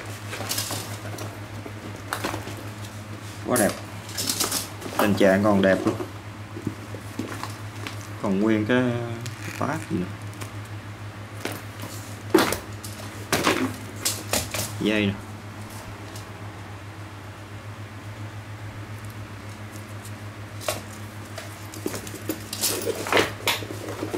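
A fabric and leather bag rustles and thumps as hands handle it.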